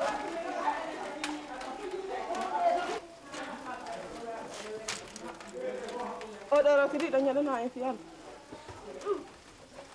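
Several women call out and chatter nearby.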